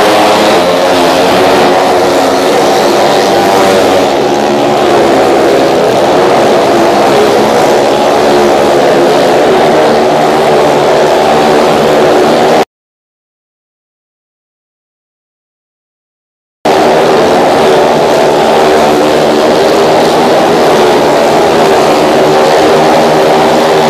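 Motorcycle engines roar loudly as they circle a wooden wall.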